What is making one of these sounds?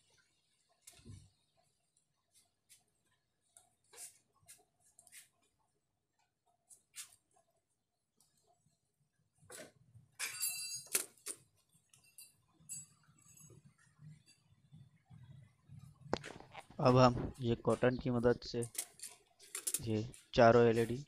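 Hard plastic parts click and tap as they are handled close by.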